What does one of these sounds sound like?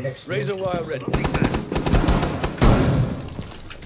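A shotgun fires several rapid blasts.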